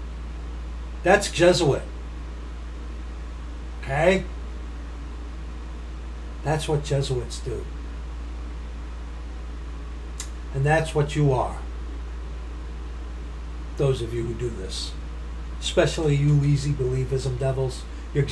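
A middle-aged man speaks calmly into a nearby microphone in short phrases with pauses.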